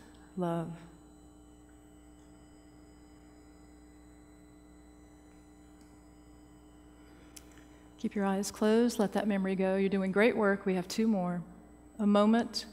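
An older woman speaks calmly through a microphone in a large hall.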